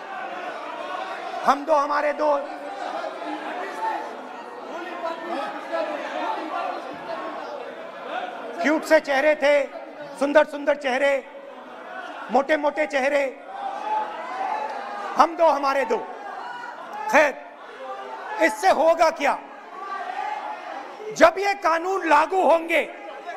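Many people murmur and call out in the background.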